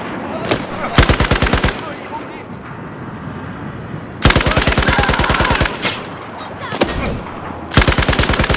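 A rifle fires in rapid bursts close by.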